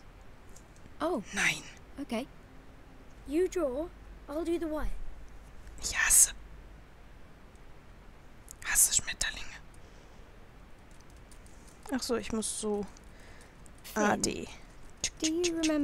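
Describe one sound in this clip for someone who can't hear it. A young girl speaks hesitantly, close by.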